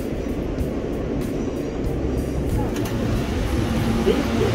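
A subway train rumbles along the tracks.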